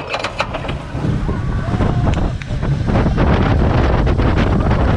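Wind rushes loudly past as the coaster speeds down the track.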